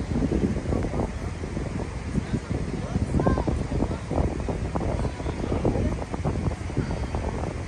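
A river rushes and roars steadily in the distance.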